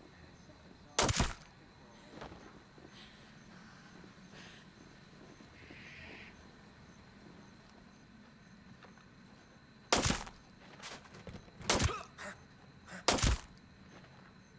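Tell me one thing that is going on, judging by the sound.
A young man exclaims loudly into a close microphone in short bursts.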